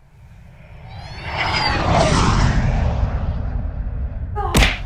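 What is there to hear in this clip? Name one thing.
A young boy yells loudly and excitedly, close by.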